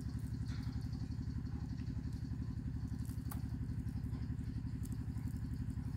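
An animal chews and gnaws on food close by.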